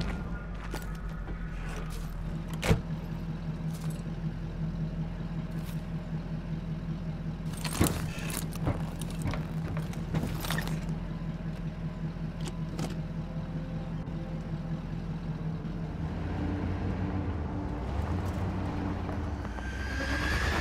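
A vehicle engine idles and rumbles steadily.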